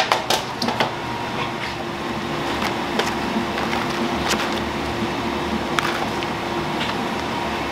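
Dried strips rustle as gloved hands handle them.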